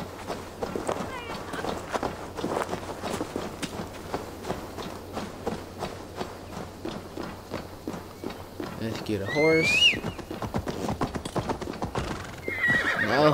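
Footsteps crunch steadily on a dirt and stone path.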